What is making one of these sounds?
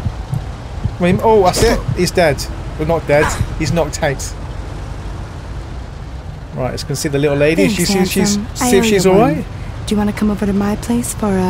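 A man talks with animation through a microphone.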